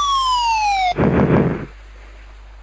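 A heavy thud of a crash landing.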